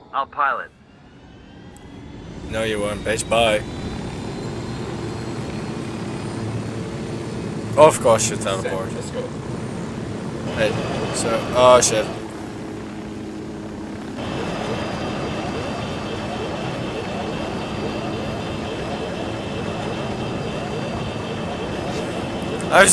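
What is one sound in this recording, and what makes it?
A helicopter engine starts up and its rotor whirs steadily, growing louder.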